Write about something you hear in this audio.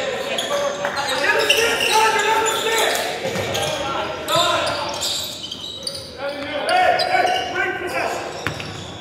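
Young men shout and call out to each other in a large echoing gym.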